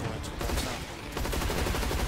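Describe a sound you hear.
A large monster roars.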